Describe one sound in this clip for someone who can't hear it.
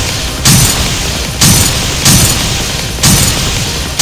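Bright game sound effects chime as pieces burst.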